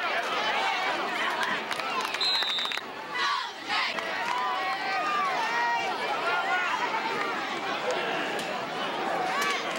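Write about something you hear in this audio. A large crowd of spectators chatters and shouts outdoors.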